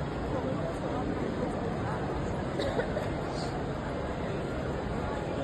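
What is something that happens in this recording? A crowd of adults murmurs and chatters in the background of a large, busy hall.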